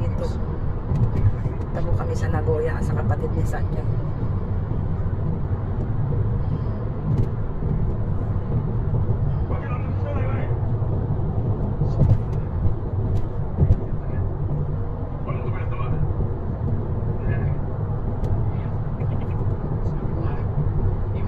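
A car engine hums steadily as tyres roll over the road from inside the car.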